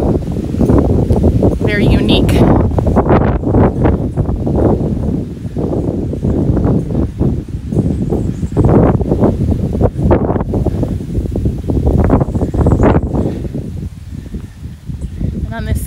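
Wind gusts loudly and buffets outdoors.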